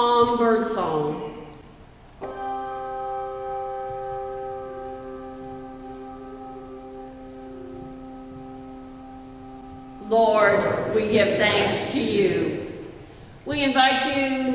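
Handbells ring out in an echoing room, and their tones ring on and slowly fade.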